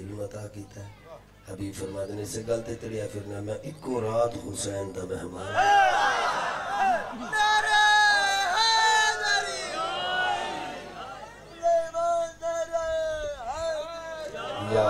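A man recites loudly and with feeling into a microphone, heard through a loudspeaker.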